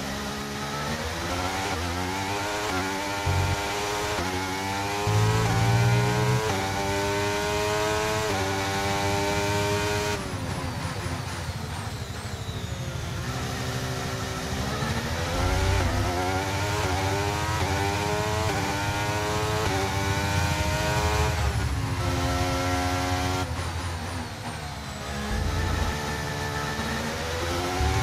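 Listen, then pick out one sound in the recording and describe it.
A racing car engine revs high, rising through the gears and dropping as it shifts down.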